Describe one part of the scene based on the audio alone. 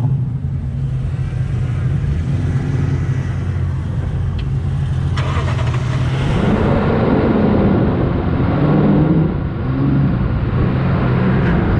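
Tyres roll slowly over soft sand.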